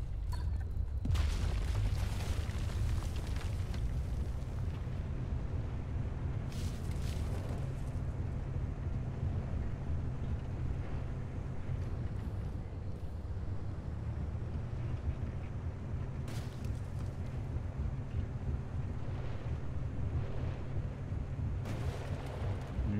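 A vehicle engine rumbles low and steady while driving.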